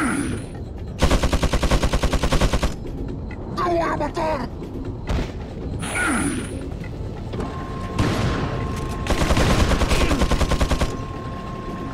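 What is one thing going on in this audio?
A heavy machine gun fires long, rapid bursts.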